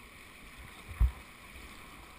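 A paddle knocks against a kayak.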